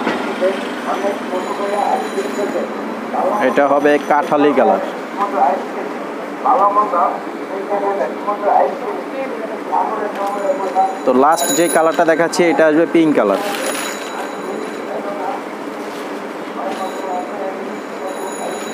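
Cloth rustles as a fabric is unfolded.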